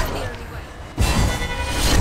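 A loud burst booms suddenly.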